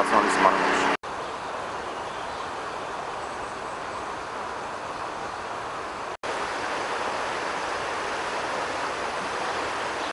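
Floodwater flows and rushes steadily.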